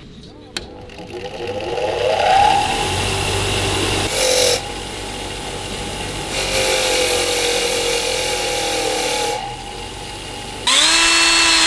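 A bench grinder whirs as it spins up.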